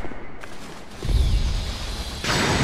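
Flames burst with a loud roar.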